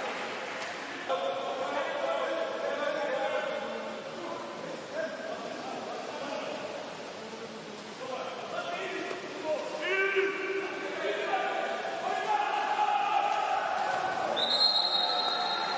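Water splashes as swimmers thrash through a pool.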